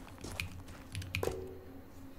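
A metal chain and padlock rattle.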